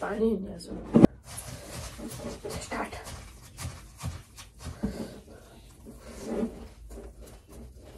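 Fingers squelch and mix rice.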